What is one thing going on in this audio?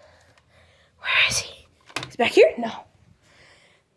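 A child shouts excitedly nearby.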